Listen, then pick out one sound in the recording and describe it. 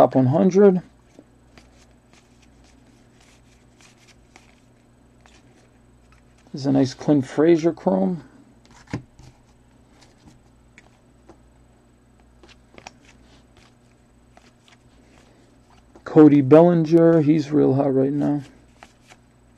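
Stiff cards rustle and slide softly as hands flip through a stack.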